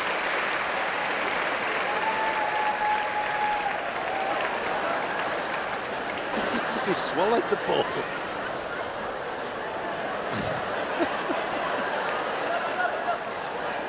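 A crowd murmurs and cheers in a large open stadium.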